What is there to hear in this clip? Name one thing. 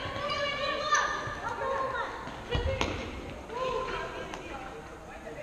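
A ball thumps as it is kicked, echoing through a large hall.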